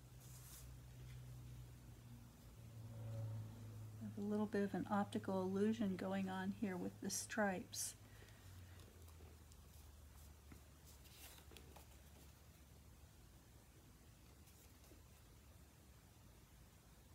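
Paper rustles softly as it is handled.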